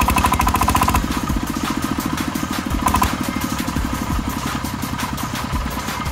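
A small diesel engine chugs loudly and rapidly nearby.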